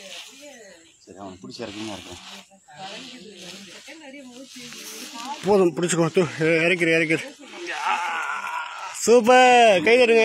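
A young boy cries out and whimpers close by.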